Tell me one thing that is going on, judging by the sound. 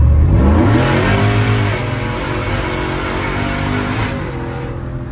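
A truck engine roars loudly as it accelerates, its pitch rising.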